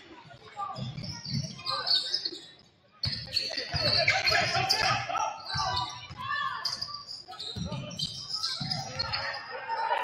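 A basketball bounces on a hard wooden floor with dull thumps.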